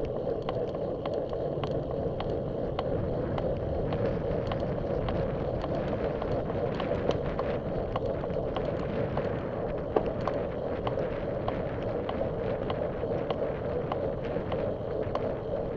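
Bicycle tyres hum and rattle over a paved path.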